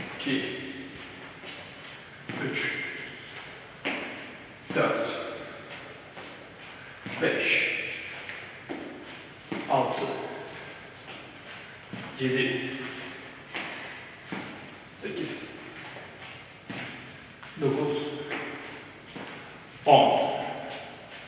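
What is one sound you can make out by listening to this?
A man speaks calmly in short phrases in an echoing room.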